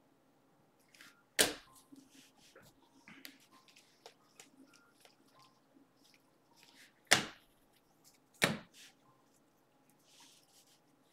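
Trading cards slide and rustle in hands.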